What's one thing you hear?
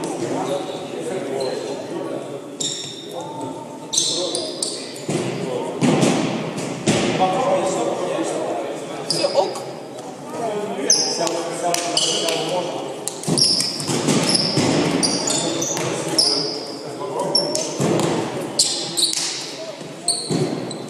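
Men talk and call out to each other across an echoing hall.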